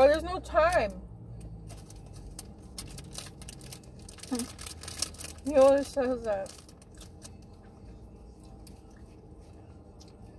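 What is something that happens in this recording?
A plastic wrapper crinkles in a hand.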